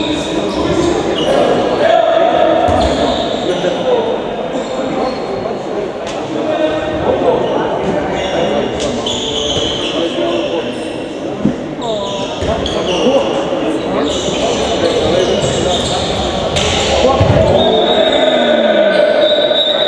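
Young men shout and call out to each other in a large echoing hall.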